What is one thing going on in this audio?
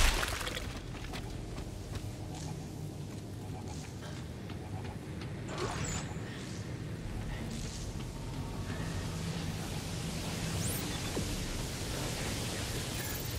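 Heavy footsteps clank on a metal grating.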